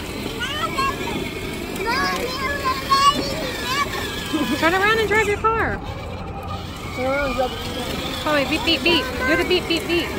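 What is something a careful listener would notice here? A toddler girl babbles and calls out.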